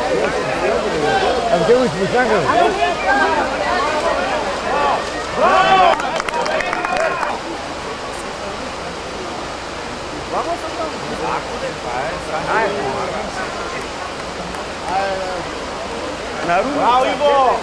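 Men shout and call out from the cold water.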